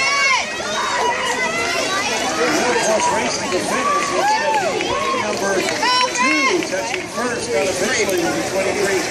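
A crowd of children and adults cheers and shouts loudly outdoors.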